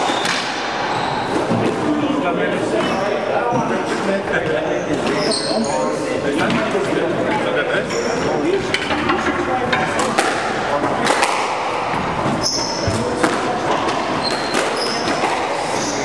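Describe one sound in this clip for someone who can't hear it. A ball smacks against walls and racquets with sharp echoing thwacks.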